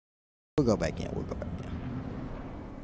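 A young man speaks close to a microphone with animation.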